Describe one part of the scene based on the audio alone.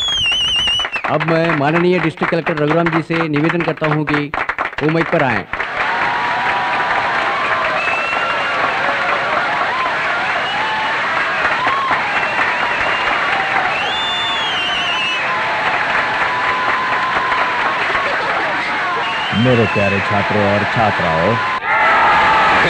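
A man speaks into a microphone through loudspeakers.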